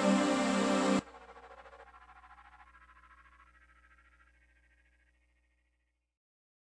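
A synthesizer's remaining tones pulse quickly and slowly fade away.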